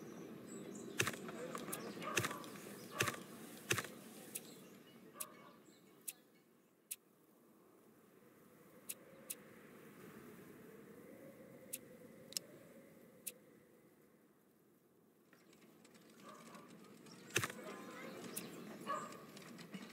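Sharp interface clicks sound now and then.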